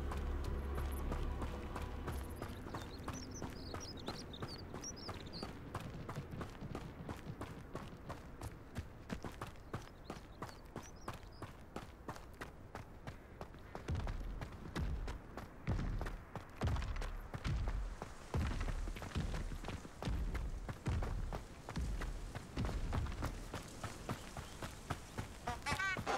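Footsteps run quickly over dirt and stone.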